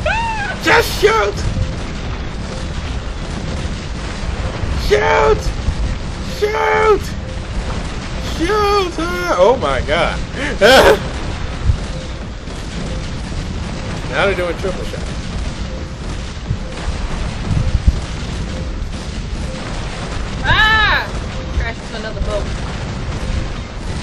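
Ocean waves surge and crash steadily.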